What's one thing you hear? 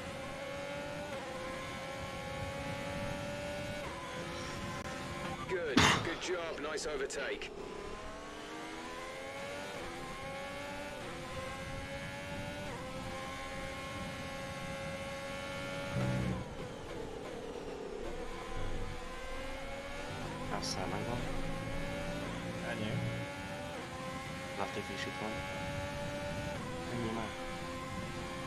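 A racing car engine whines loudly, rising in pitch as it speeds up and dropping as it slows for corners.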